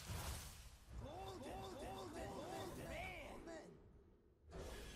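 Bright magical chimes ring out as cards are revealed.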